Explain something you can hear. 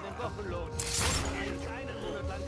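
A loud explosion bursts and scatters debris.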